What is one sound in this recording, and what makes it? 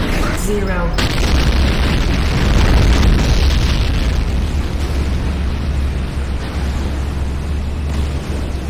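An electric weapon crackles and buzzes steadily.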